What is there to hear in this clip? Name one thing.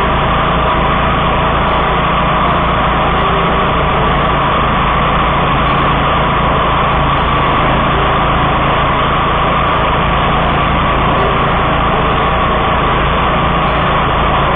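A mower engine roars steadily up close.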